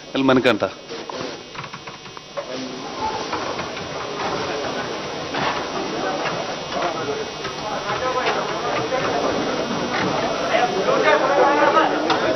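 A crowd of men chatters and calls out.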